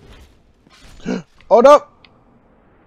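A man cries out loudly in pain.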